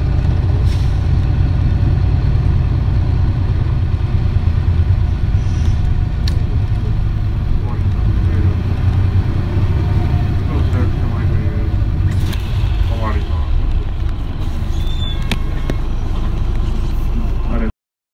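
A bus engine idles with a deep, steady rumble.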